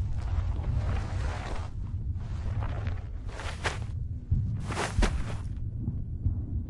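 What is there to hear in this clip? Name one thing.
Debris crunches and scrapes as a man crawls over the ground.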